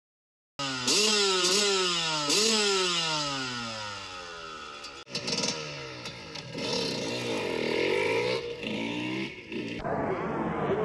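A motorcycle engine revs loudly, rising and falling in pitch.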